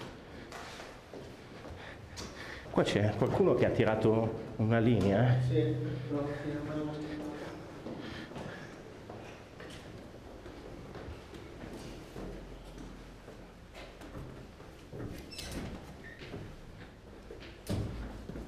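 Footsteps climb echoing concrete stairs.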